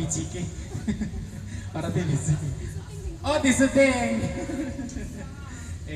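A young woman sings through a microphone over loudspeakers.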